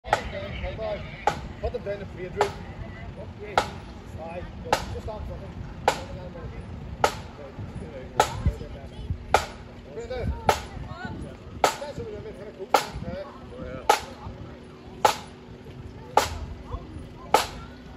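A bass drum thumps in a slow, steady marching beat outdoors.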